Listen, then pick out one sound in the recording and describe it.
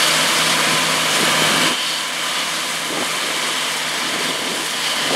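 Crops rustle and crackle as a combine harvester cuts through them.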